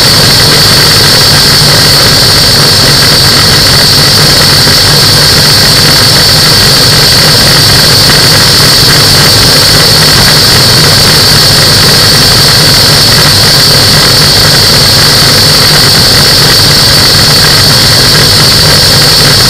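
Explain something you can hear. A small aircraft engine drones steadily up close.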